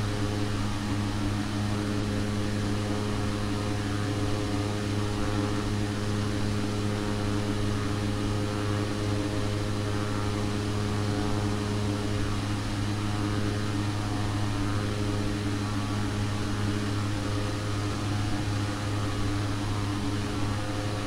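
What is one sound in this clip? Twin propeller engines drone steadily.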